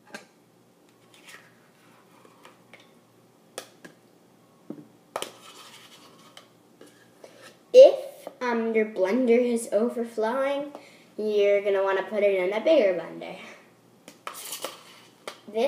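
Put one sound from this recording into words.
A spoon scrapes yogurt into a plastic blender jar.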